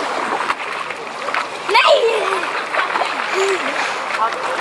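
A young boy laughs and calls out close by.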